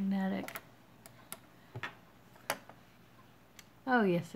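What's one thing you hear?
Small metal pliers click against wire and beads.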